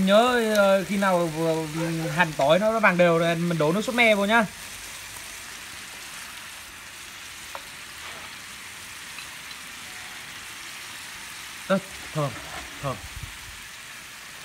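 Chopsticks stir and scrape softly in a pan of bubbling liquid.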